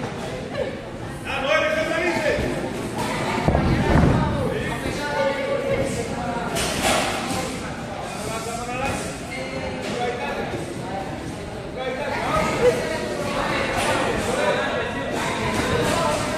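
Sneakers squeak and shuffle.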